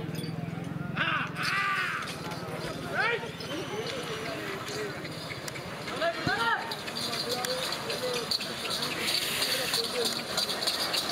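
Men shout loudly to urge on bulls outdoors.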